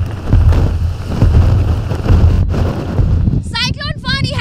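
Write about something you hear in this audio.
Strong wind roars and buffets against the microphone.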